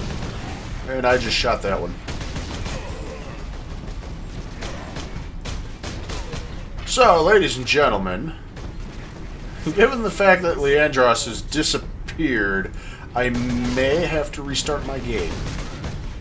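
A young man talks and laughs with animation into a close microphone.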